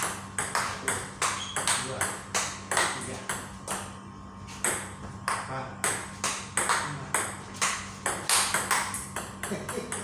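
A ping-pong ball clicks rapidly back and forth off paddles and a table.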